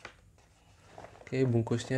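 A paper envelope rustles as it is handled.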